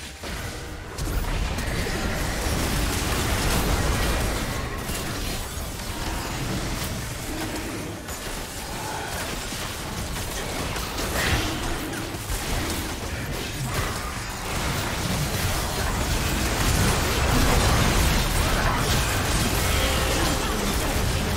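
Game spell effects and explosions crackle and boom in a battle.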